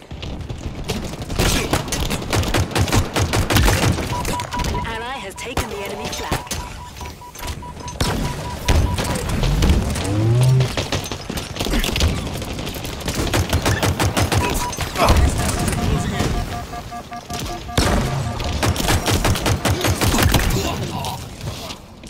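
Rapid video game gunfire bursts out in volleys.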